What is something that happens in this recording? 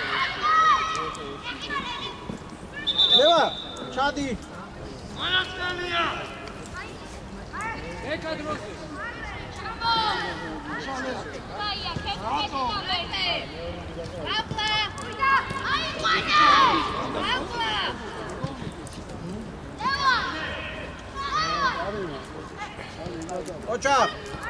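Young boys shout and call out to each other outdoors.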